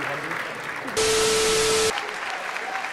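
Television static hisses with a steady beep.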